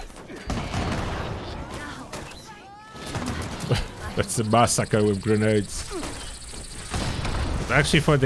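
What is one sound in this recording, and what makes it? Gunfire and explosions crack from a game.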